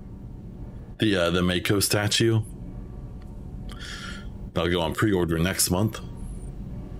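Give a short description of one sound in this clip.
A man speaks calmly and closely through a microphone, in short bursts.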